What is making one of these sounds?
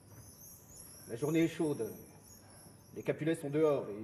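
A man speaks loudly and with feeling, with a slight echo.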